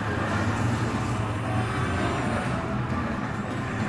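Speedboat engines roar at high speed.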